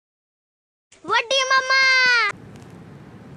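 A young child shouts loudly nearby.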